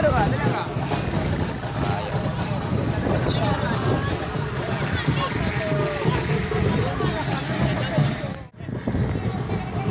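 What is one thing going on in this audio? Several men and women talk at once close by, outdoors.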